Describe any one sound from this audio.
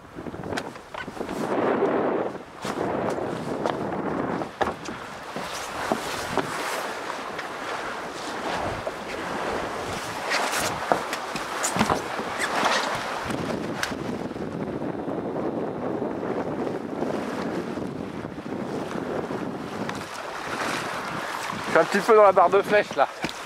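Wind blusters against the microphone outdoors.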